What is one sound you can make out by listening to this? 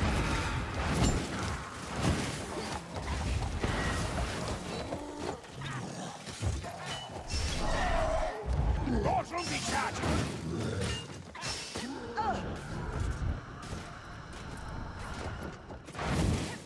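Weapons clash and strike enemies in a fast, noisy fight.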